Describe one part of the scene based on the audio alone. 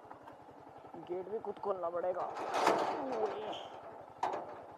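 A metal gate rattles and creaks as it is pushed open.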